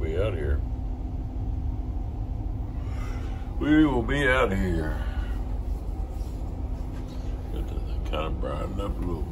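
A boat engine rumbles low and steady.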